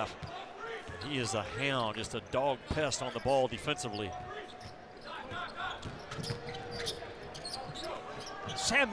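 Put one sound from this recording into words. A crowd murmurs in a large echoing arena.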